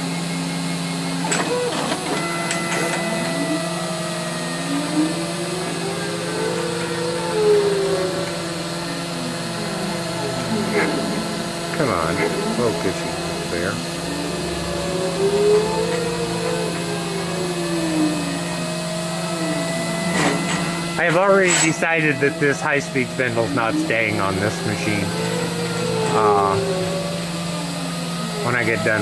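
A milling machine motor whirs steadily.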